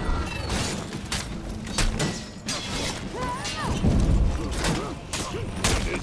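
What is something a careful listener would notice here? Warriors grunt and shout as they fight.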